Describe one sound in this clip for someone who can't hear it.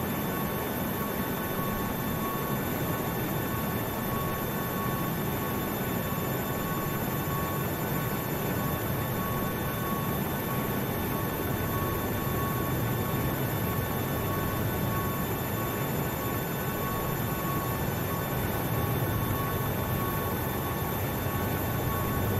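An idling jet engine hums and whines steadily.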